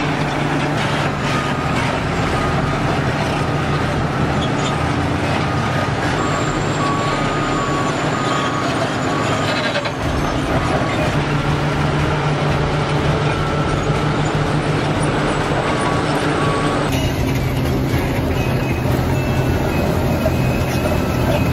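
Large crawler bulldozers rumble as they push earth.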